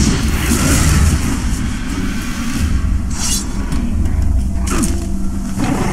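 A blade stabs and flesh thuds in a close fight.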